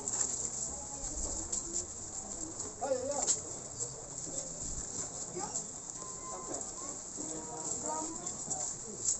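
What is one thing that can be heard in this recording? Plastic bags rustle as they are carried along.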